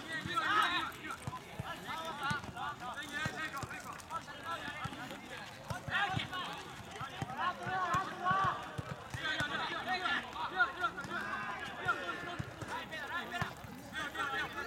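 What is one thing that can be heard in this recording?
Young male players shout and call to each other outdoors.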